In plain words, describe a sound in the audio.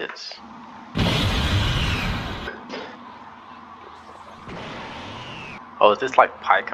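An energy aura flares up with a loud whooshing roar.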